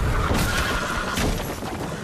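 Horses gallop over dirt.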